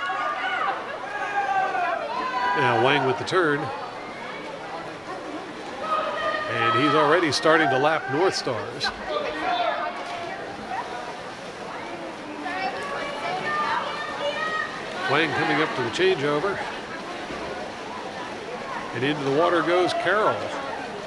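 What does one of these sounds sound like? A crowd of spectators cheers and shouts loudly in an echoing indoor hall.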